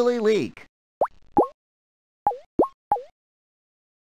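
Water drops plink one after another.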